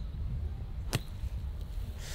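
A golf club strikes sand with a sharp thud.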